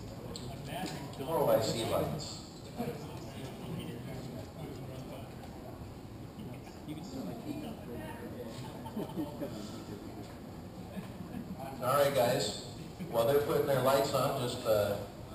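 Men talk close by in a large echoing hall.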